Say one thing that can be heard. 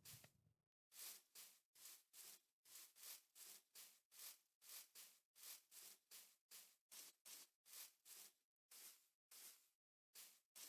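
Footsteps pad steadily over soft ground.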